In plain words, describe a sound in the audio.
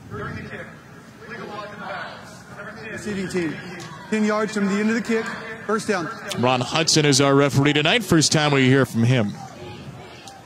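A man announces calmly over a loudspeaker in a large, echoing stadium.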